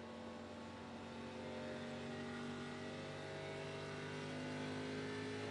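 A race car engine roars steadily and slowly rises in pitch.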